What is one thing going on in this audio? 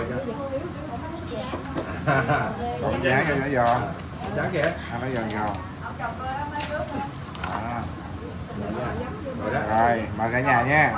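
Several adults chat around a table.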